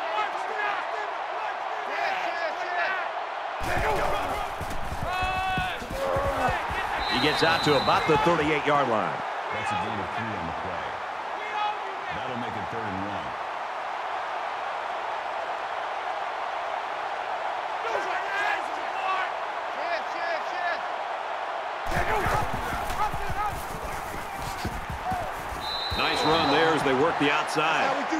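A large crowd cheers steadily, swelling to a roar at times.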